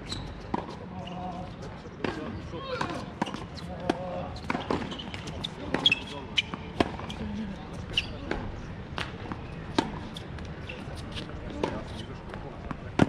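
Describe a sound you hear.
Sneakers squeak and shuffle on a hard court.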